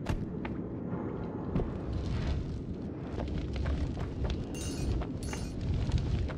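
A pickaxe chips at rock in short, repeated knocks.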